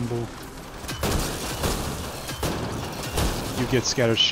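Energy weapons fire in sharp, crackling bursts.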